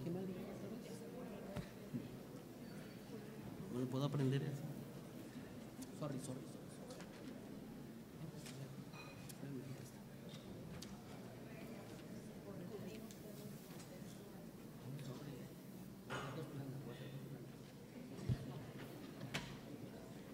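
Men and women talk at a distance in a room that echoes.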